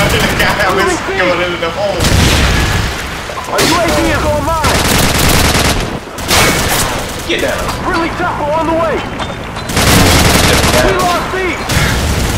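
Gunfire bursts rattle in quick succession.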